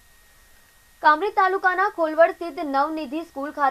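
A young woman speaks clearly and evenly into a microphone, reading out.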